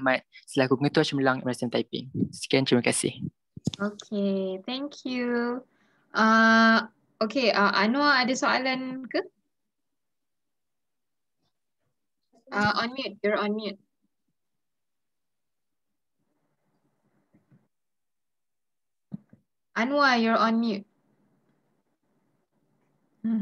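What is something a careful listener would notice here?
A young woman talks calmly through an online call, with pauses.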